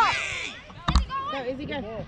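A ball thumps as it is kicked.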